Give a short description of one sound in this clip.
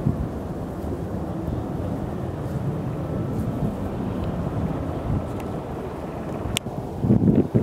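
A helicopter's rotor thumps steadily in the distance.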